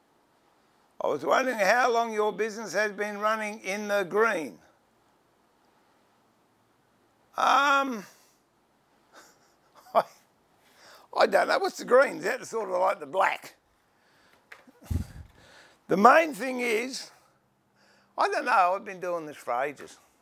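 An older man talks calmly and close by.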